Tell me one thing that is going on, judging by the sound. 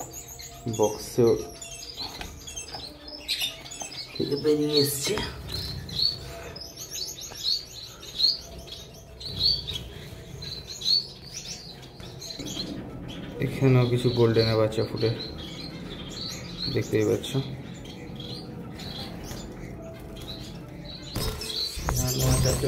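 Small birds chirp rapidly and repeatedly, close by.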